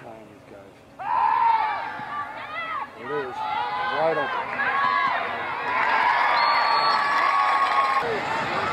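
Spectators on the sidelines cheer and shout outdoors.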